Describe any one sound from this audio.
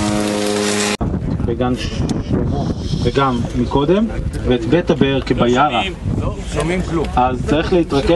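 A man speaks to a group outdoors, explaining calmly.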